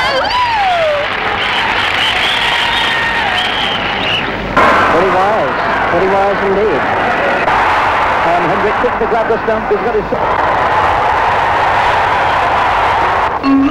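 A large crowd murmurs and cheers.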